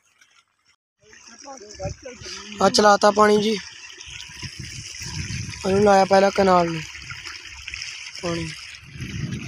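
Water gushes from a pipe and splashes.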